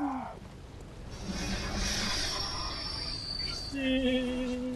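A large fireball explodes with a roar.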